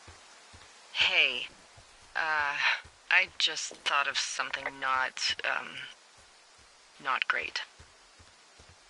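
A woman speaks calmly through a crackly walkie-talkie.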